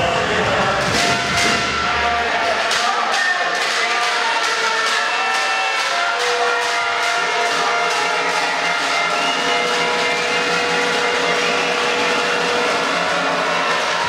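A large crowd claps rhythmically in an echoing hall.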